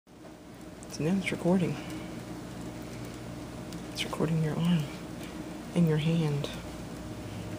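A woman speaks briefly in short phrases close by.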